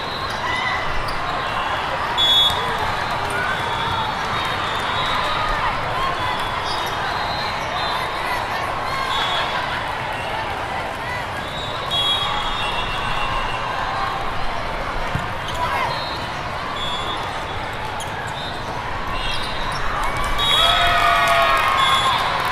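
A volleyball is struck with a thud.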